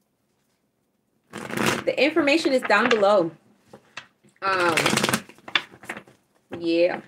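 Playing cards riffle and flap as they are shuffled.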